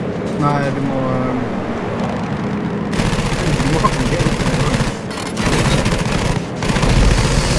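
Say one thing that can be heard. Aircraft machine guns fire in rapid bursts.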